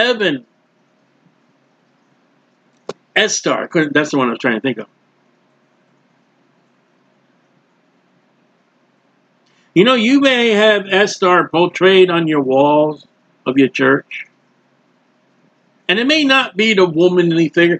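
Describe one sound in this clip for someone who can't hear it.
A man speaks calmly into a close microphone, pausing between phrases.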